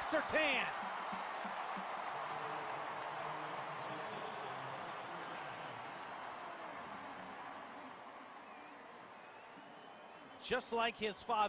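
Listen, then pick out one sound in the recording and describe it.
A stadium crowd cheers loudly and slowly dies down.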